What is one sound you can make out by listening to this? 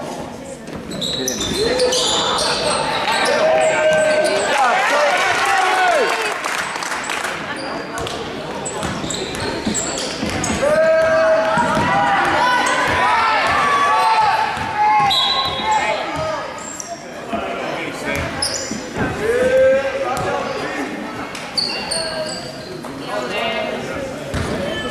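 A crowd of spectators cheers and shouts in an echoing gym.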